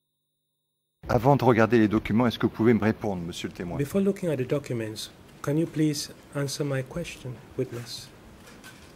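A middle-aged man speaks calmly and with animation into a microphone.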